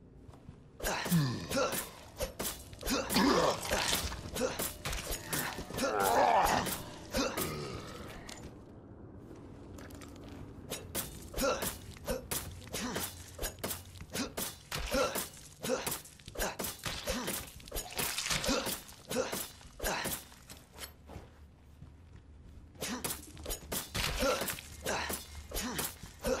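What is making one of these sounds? A knife repeatedly stabs and slashes into flesh with wet squelches.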